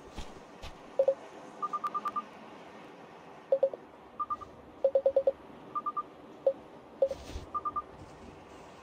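Short electronic beeps chirp in quick bursts.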